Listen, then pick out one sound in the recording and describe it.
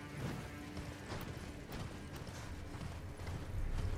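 A horse's hooves gallop over snowy ground.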